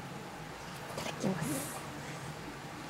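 A young woman slurps noodles.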